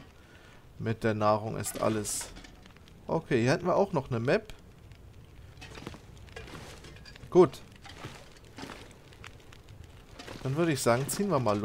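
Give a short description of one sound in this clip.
A fire crackles softly in a wood stove.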